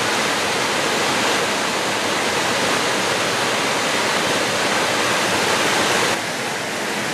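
A tall waterfall roars as it cascades and splashes onto rocks.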